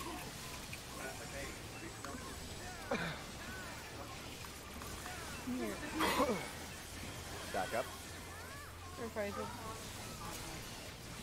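Magical spell effects whoosh and chime in bursts.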